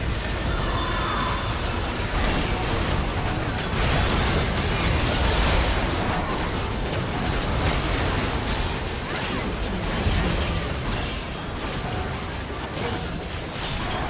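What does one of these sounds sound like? Magic blasts and weapon hits crash and whoosh in a busy video game battle.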